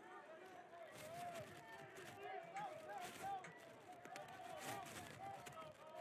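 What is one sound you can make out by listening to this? A crowd cheers in the distance.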